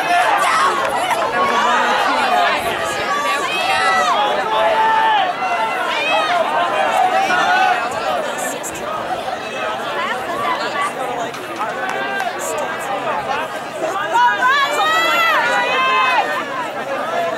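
A crowd of young people talks and cheers outdoors.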